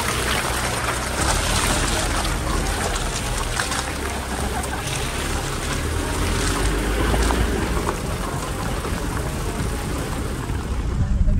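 A vehicle's engine rumbles low and steady as it drives slowly.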